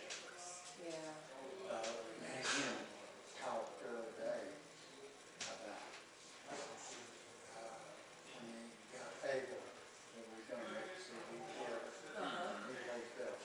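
A man talks calmly some distance away in a large, echoing room.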